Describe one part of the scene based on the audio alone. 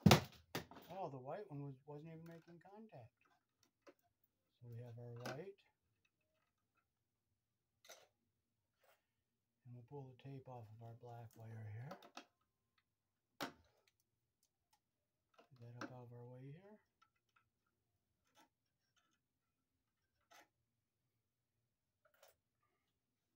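Small clicks and taps come from wiring being handled.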